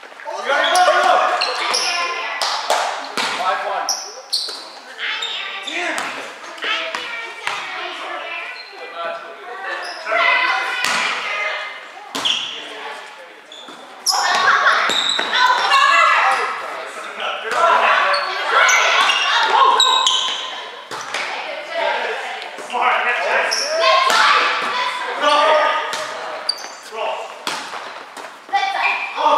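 Young men and women call out and chatter in a large echoing hall.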